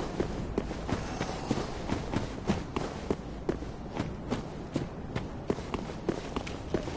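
Quick footsteps run over rough ground.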